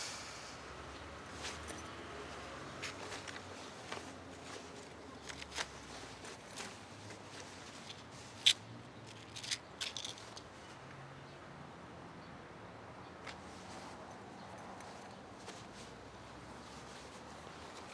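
A bag's contents rustle and clink as a man rummages through it.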